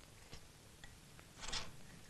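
A woman sips from a wooden bowl.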